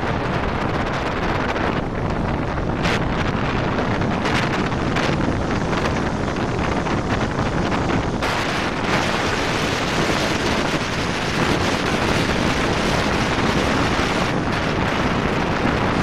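Wind rushes and buffets against a microphone on a bicycle speeding downhill.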